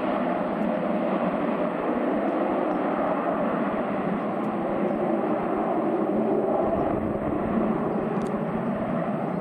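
A jet engine roars steadily as an aircraft takes off in the distance.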